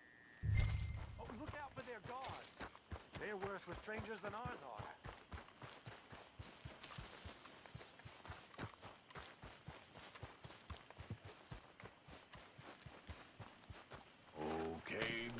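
Footsteps run quickly over grass and dirt.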